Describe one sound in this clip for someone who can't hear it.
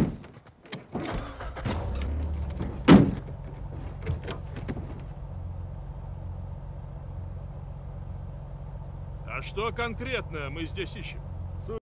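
A vehicle engine starts and rumbles steadily.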